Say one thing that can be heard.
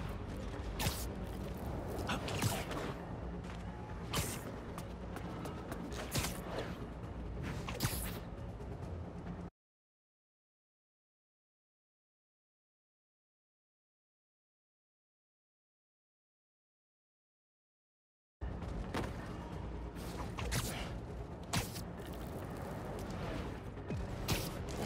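Webs shoot out with sharp snapping sounds.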